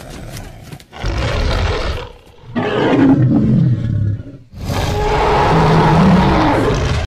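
A huge beast roars loudly and deeply.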